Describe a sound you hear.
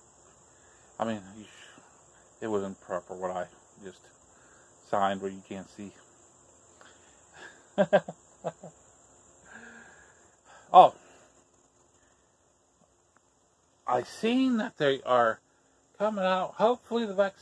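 A middle-aged man talks calmly and close by, in short bursts with pauses.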